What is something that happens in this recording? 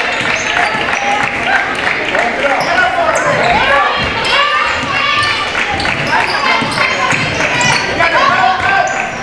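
A basketball bounces on the floor.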